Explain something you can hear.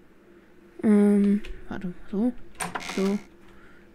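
A wooden door swings open with a creak.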